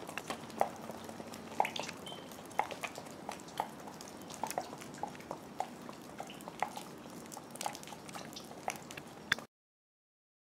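Horse hooves clop steadily on wet pavement.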